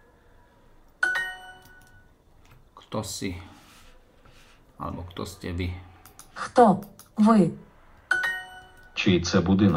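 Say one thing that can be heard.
A bright electronic chime rings twice.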